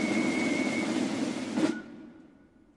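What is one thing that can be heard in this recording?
A drum corps plays a loud, fast snare drum roll.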